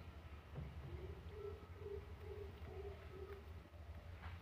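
A young parrot chirps softly.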